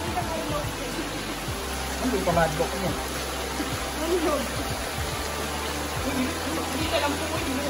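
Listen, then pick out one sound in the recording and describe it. Water rushes and splashes steadily outdoors.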